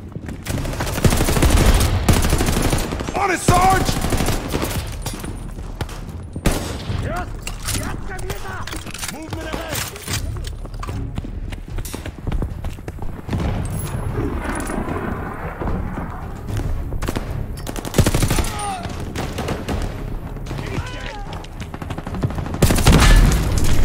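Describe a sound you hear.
A machine gun fires in loud rapid bursts.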